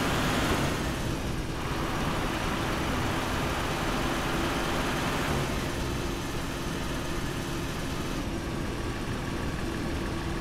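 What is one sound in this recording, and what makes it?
A semi-truck engine drones while cruising on a road.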